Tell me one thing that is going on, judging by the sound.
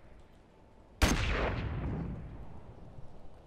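A single loud gunshot booms and echoes.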